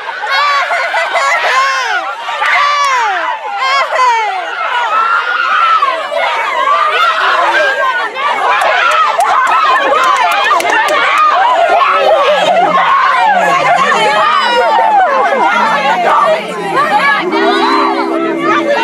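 A crowd of young women and girls screams and cheers excitedly outdoors.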